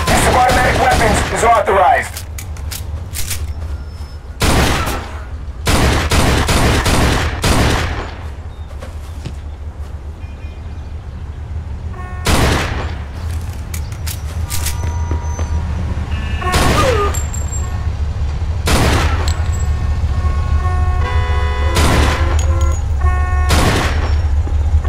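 Pistol shots crack sharply, again and again.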